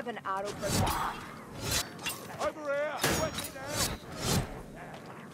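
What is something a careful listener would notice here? Swords swish and strike with sharp impacts.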